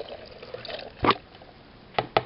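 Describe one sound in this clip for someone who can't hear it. A plastic container knocks down onto a wooden surface.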